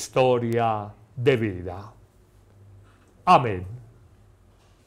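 A middle-aged man speaks slowly and calmly into a microphone.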